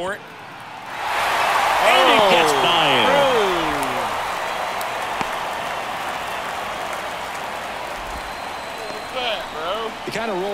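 A crowd cheers loudly and the cheering slowly fades.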